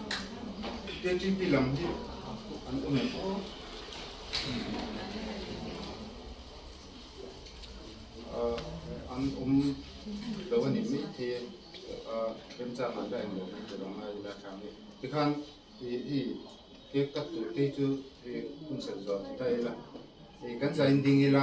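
A man speaks calmly, nearby.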